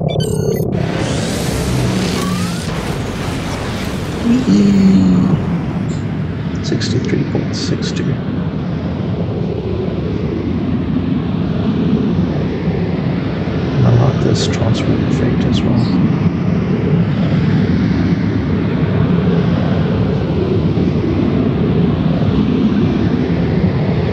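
A spaceship's engines roar with a deep, rushing drone as the ship speeds along.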